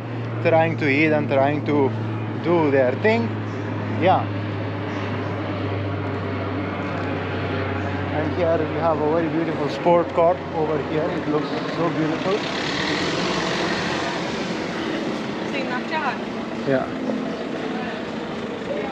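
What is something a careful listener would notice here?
A man talks close up, calmly and with animation, outdoors.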